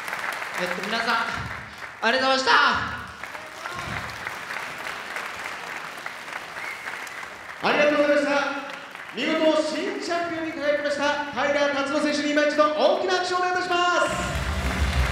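A young man speaks through a microphone over loudspeakers in a large echoing hall.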